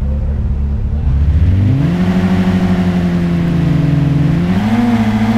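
A sports car engine revs up and roars as the car accelerates.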